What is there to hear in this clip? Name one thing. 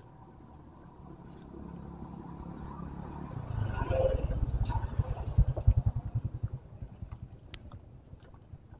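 A motorbike engine approaches, passes close by and fades away.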